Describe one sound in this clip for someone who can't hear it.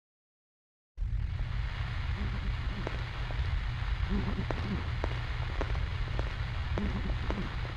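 Footsteps scuff on stone outdoors.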